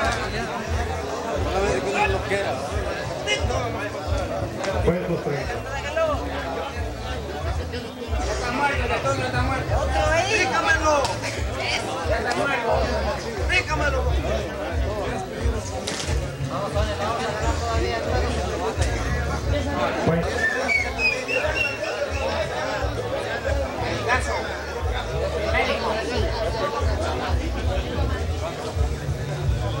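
A crowd of men shout and talk excitedly all around.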